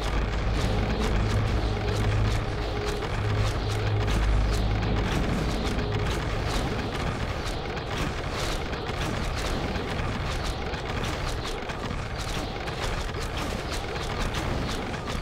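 Game spells crackle and blast in a fight.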